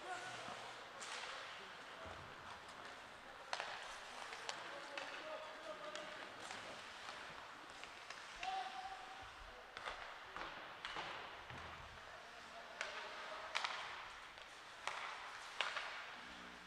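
Hockey sticks clack sharply against a puck and the ice in a large echoing rink.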